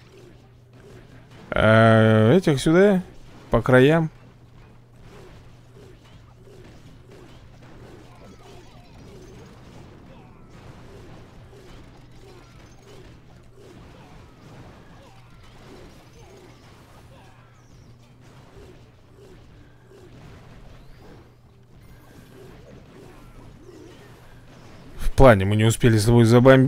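Soft thuds and clanks of a battle play out in a computer game.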